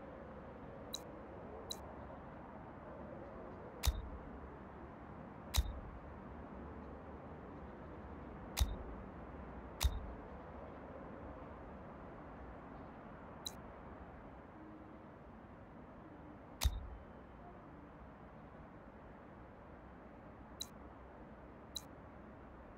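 Short interface clicks and thumps sound now and then.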